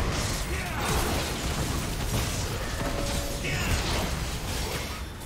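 Game spell effects burst and crackle in a fast fight.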